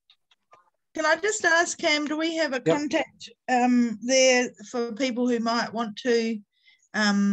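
A woman speaks steadily over an online call.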